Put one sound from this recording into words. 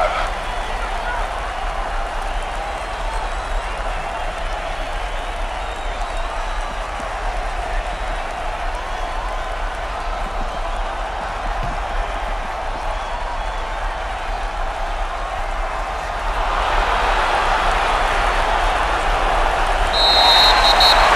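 A large stadium crowd roars steadily, swelling louder toward the end.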